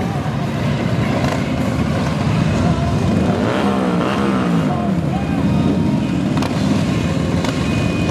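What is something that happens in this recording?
Motorcycle engines rumble loudly close by.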